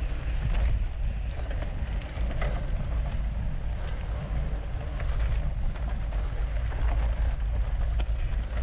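A bicycle chain clicks and rattles over bumps.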